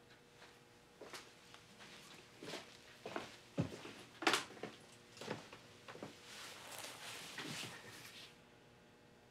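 Footsteps walk across a floor and leave a room.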